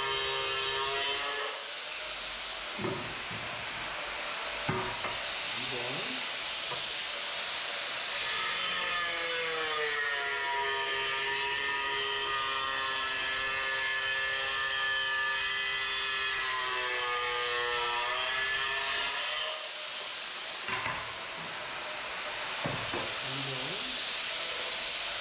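An angle grinder whines at high speed.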